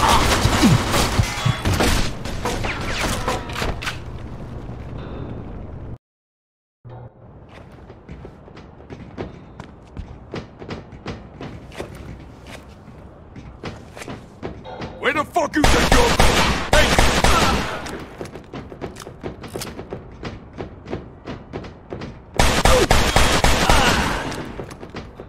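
Gunshots ring out in bursts with echoing blasts.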